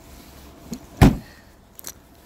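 A car's tailgate slams shut with a heavy thud.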